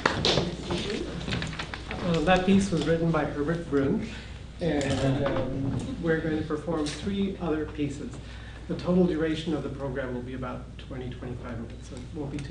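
A man speaks calmly nearby in a room.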